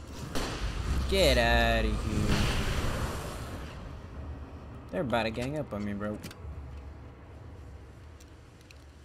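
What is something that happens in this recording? A flare hisses and crackles as it burns.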